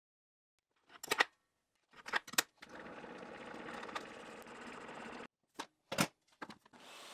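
A metal plate clicks and knocks against a table.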